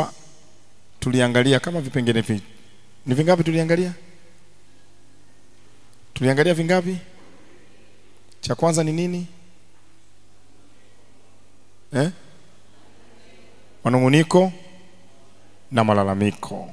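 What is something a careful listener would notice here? A young man speaks with animation into a microphone, in short bursts with pauses.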